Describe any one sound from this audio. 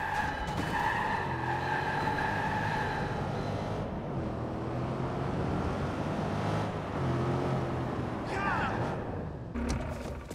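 A car engine roars as a car speeds along.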